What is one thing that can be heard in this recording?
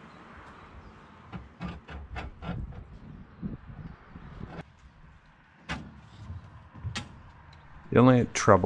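A hose scrapes and thumps against metal.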